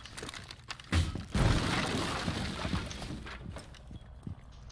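A wooden barricade is smashed and splinters.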